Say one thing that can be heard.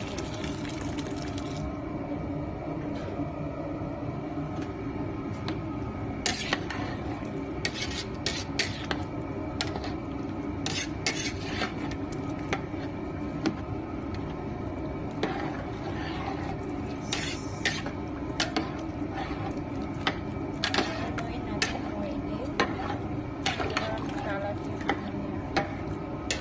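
Rice and broth simmer and bubble in a metal pot.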